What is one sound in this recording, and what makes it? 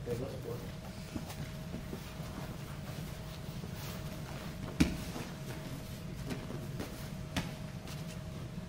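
Bodies thump and slide on a padded mat.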